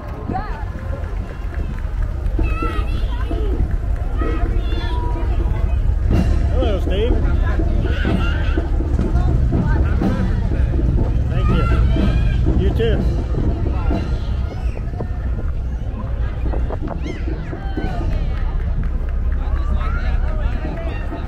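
A crowd of onlookers chats and calls out outdoors along a street.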